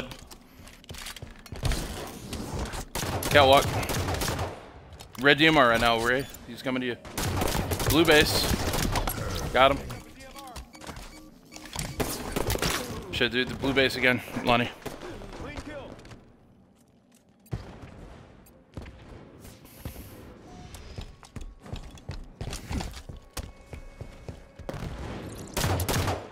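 Video game guns fire in quick bursts.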